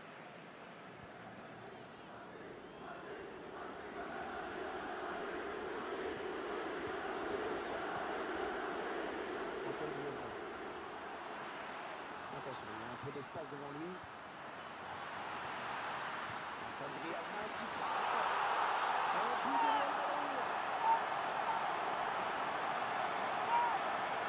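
A large stadium crowd murmurs steadily, then swells into loud cheering.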